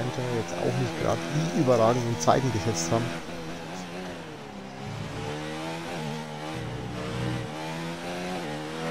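A racing car engine screams at high revs, rising and falling as it changes gear.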